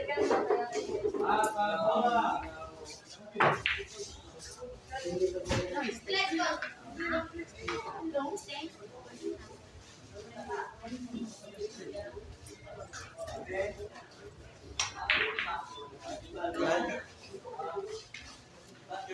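Men talk and call out in a crowd nearby.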